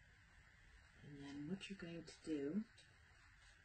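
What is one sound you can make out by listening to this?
A middle-aged woman speaks briefly and calmly close by.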